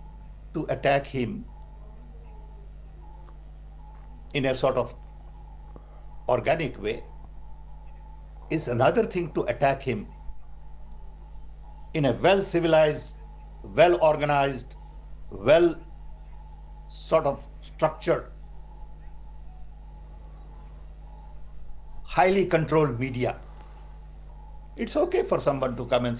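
An elderly man speaks calmly over an online call, in short bursts with pauses.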